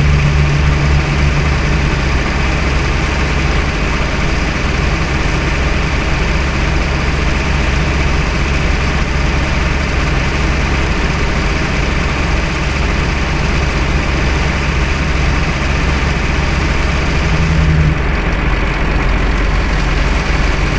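A bus engine drones steadily.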